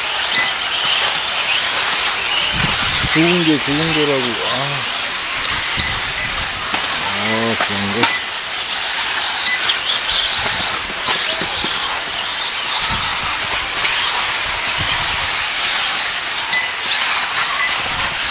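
Model car tyres skid and scrabble on packed dirt.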